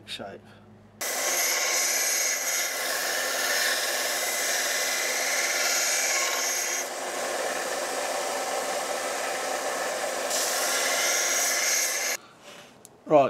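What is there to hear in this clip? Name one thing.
A belt sander whirs steadily with a high grinding hiss.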